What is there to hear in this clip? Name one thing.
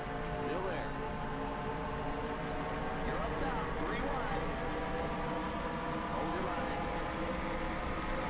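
Race car engines roar steadily.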